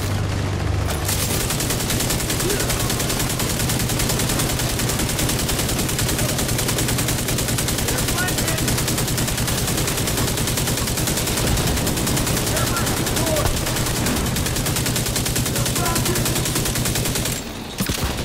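An automatic rifle fires rapid bursts of gunshots.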